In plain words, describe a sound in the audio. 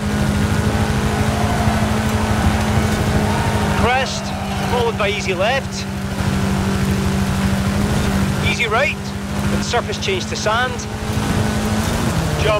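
A buggy engine roars steadily at high revs.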